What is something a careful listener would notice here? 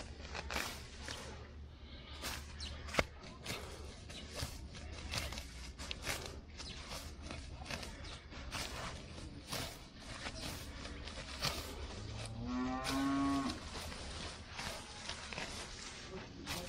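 Grass leaves rustle and snap close by as they are pulled by hand.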